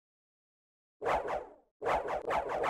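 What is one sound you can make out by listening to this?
Electronic game sound effects of attacks burst out repeatedly.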